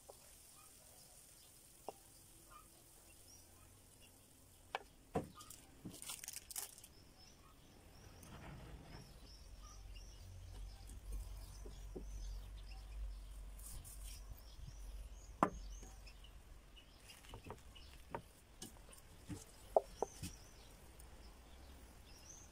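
A wooden spatula scrapes food from a pan onto bread.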